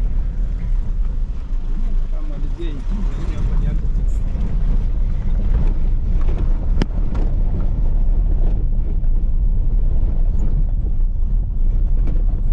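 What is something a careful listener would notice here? Tyres crunch and rattle over a bumpy dirt road.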